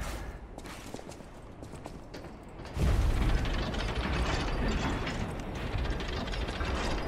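Footsteps tread on stone and wooden stairs.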